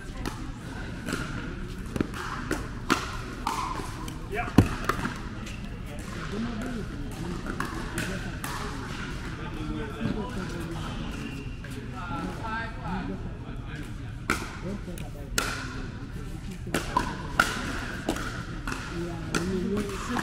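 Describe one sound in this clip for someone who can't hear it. Men call out and talk across the court.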